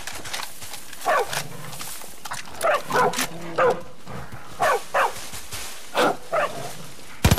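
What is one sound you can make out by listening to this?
Foxes yelp and bark nearby.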